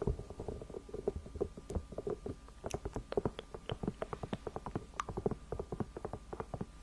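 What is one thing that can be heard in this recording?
Fingernails tap and scratch on a hollow plastic toy close to a microphone.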